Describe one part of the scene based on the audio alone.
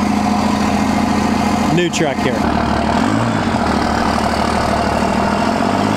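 A diesel engine idles with a steady, deep rumble.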